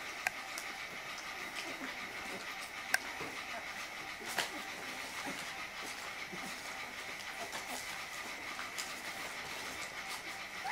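Puppies whimper and squeak softly close by.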